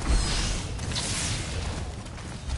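An electric bolt crackles and zaps.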